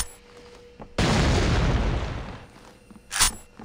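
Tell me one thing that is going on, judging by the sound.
A rifle fires with a loud, rumbling blast.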